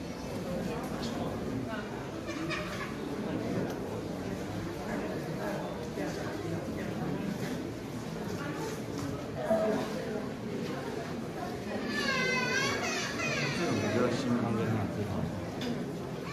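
Many people talk quietly in an indoor hall, a steady murmur of voices.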